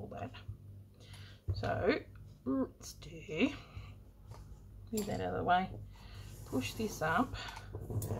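Small objects are picked up and set down on a tabletop.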